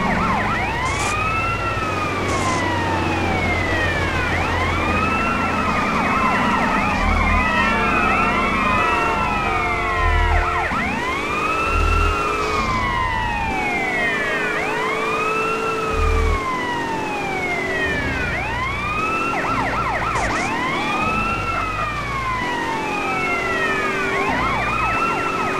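A police siren wails steadily, rising and falling.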